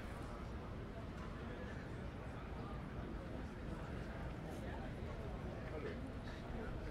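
People chatter in the distance on a busy street.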